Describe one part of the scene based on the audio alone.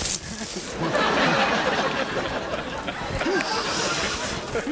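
A man laughs loudly close by.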